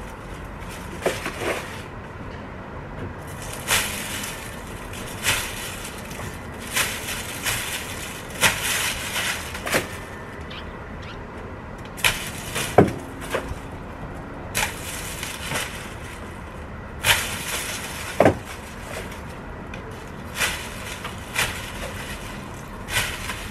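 Leaves rustle as branches are cut and pulled.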